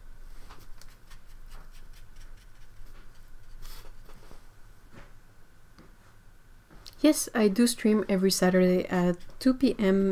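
A paintbrush strokes softly across paper.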